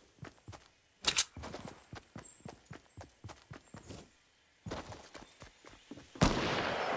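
Footsteps patter quickly over grass and wooden floor.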